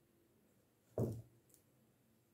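A knife thuds down on a wooden board.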